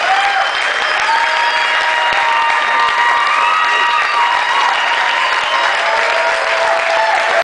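A live band plays loudly in an echoing hall.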